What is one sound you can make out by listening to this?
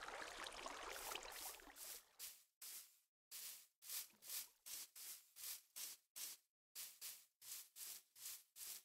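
Blocks crunch in quick repeated strokes as they are dug in a video game.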